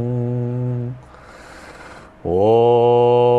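A middle-aged man draws a deep breath.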